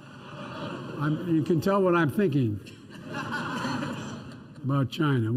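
An elderly man speaks with emphasis into a microphone.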